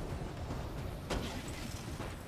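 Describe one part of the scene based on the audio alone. Guns fire in short bursts.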